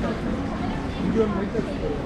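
A group of young men talk casually nearby.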